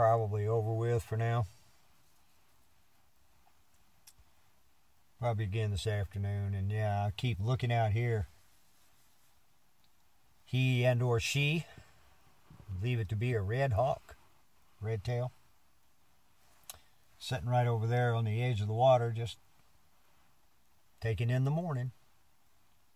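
An elderly man talks calmly close by, in short bursts with pauses.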